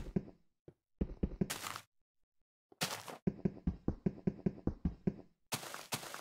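A pickaxe taps repeatedly at stone.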